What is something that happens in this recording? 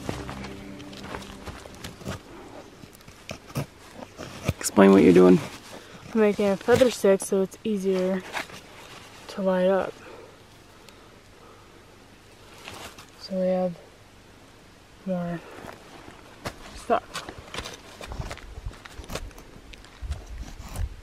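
A metal tool scrapes and crunches into snow.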